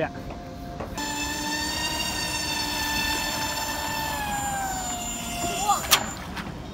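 A small model motor whines steadily at a high pitch, then drops lower and cuts out.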